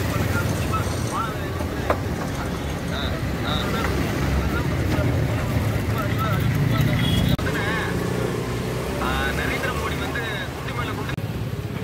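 A man talks through a phone's small speaker on a video call.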